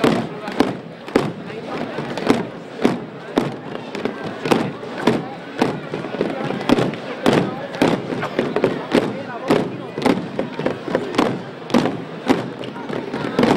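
Slow, even steps of a procession tap on paving.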